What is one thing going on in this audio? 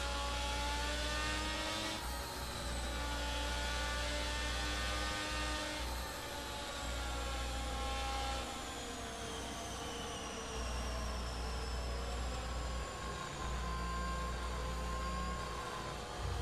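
A racing car engine whines at high pitch, rising and falling as the car slows and speeds up.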